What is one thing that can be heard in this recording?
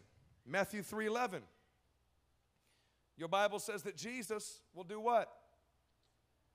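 A man speaks with emphasis through a microphone, in short bursts with pauses.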